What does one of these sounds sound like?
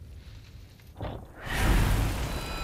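A monster roars loudly and harshly.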